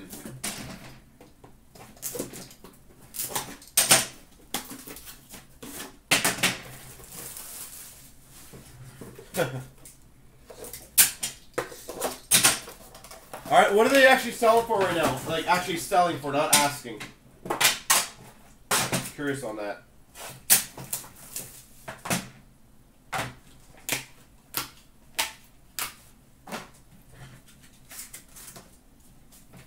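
Plastic card cases click and clatter as they are handled.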